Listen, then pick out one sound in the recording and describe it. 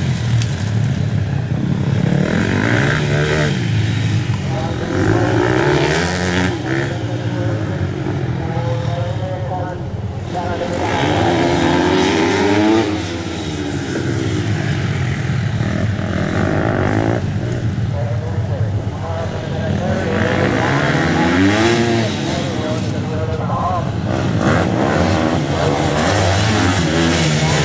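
Dirt bike engines rev and whine up and down as motorcycles race past.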